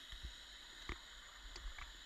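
Air bubbles gurgle and rise underwater.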